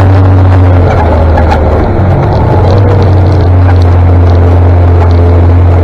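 Tyres roll along a road surface.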